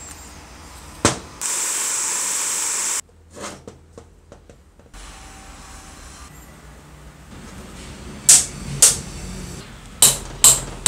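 Metal parts click and knock as they are handled.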